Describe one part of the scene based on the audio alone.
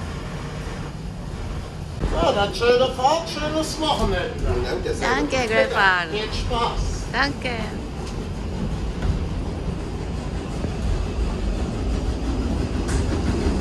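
A train carriage rumbles steadily as it rolls along.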